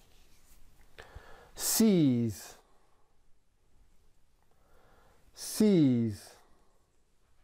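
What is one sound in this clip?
A man speaks close by, with loud drawn-out calls that fall in pitch.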